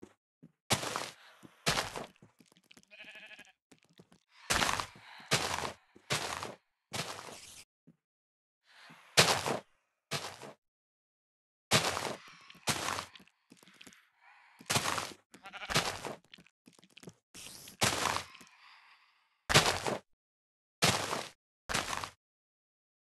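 Tall grass breaks with short rustling crunches in a video game.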